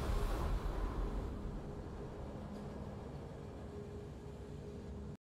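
A triumphant game fanfare swells and slowly fades.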